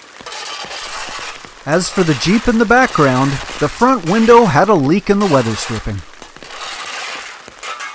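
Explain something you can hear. A shovel scrapes through wet mud and gravel.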